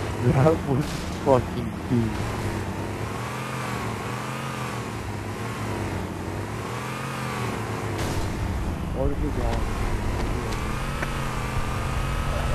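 A vehicle engine hums steadily, its pitch rising and falling as it drives.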